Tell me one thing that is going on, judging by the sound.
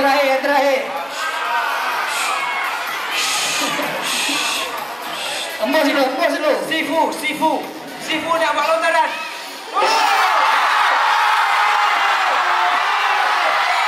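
A crowd chatters and cheers.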